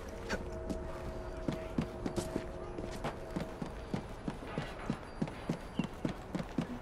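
Footsteps thud on rooftops.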